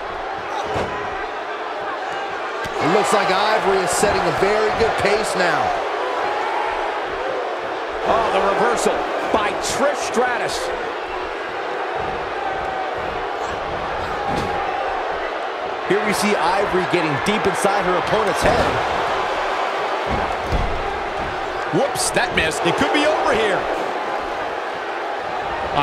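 A crowd cheers and roars steadily in a large echoing arena.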